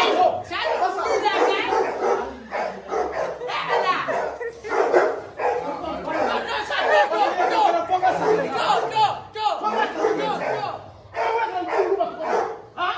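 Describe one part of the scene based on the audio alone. Men and women talk loudly and excitedly over one another nearby.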